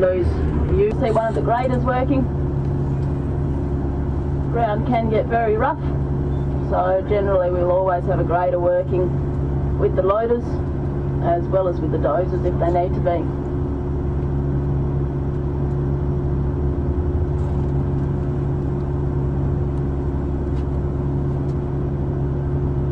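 Large tyres crunch over dirt as a heavy truck drives.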